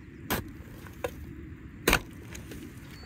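A spade digs into damp soil and manure.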